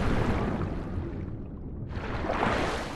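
Water gurgles, muffled, underwater.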